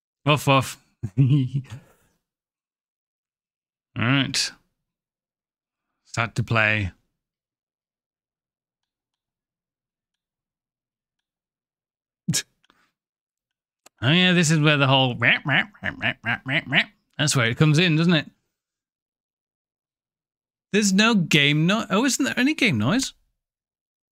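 A man talks with animation into a microphone, in short bursts.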